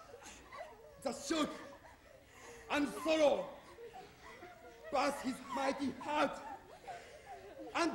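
A young man sings out loudly with anguish.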